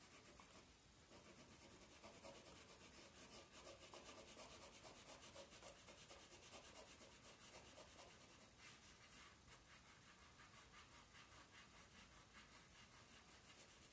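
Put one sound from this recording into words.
A pencil scratches rapidly back and forth on paper.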